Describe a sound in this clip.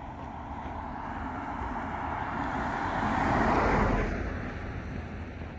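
A car drives past close by on a wet road, its tyres hissing and fading away.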